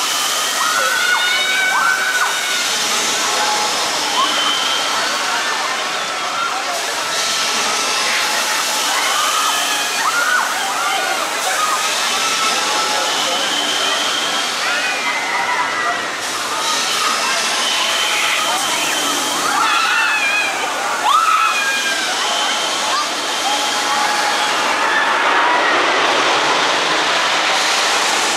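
A large swinging ride whooshes back and forth.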